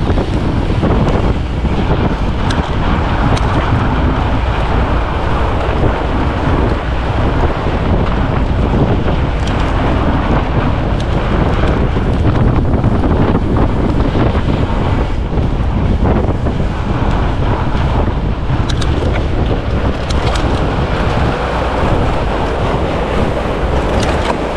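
Fat bicycle tyres crunch over packed snow.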